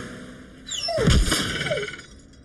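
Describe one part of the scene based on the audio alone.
A wooden plank thumps and springs up.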